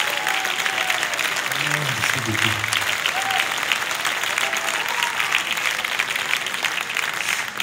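A large audience applauds steadily in a hall.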